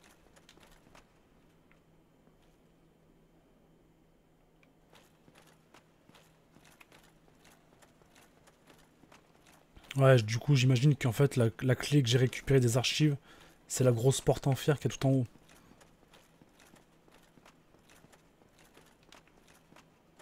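Armored footsteps clatter quickly on stone steps.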